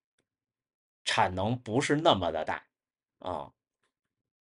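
A young man speaks close by in a lively tone.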